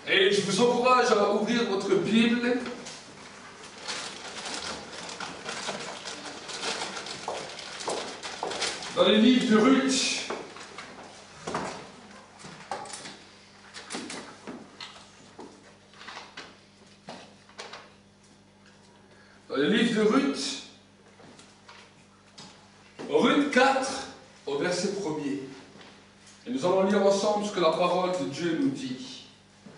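A man speaks calmly in bursts, in a room with some echo.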